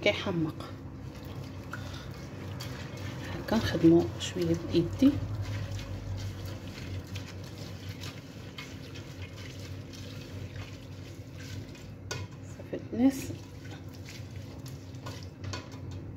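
A hand stirs and squishes wet rice in a metal pot.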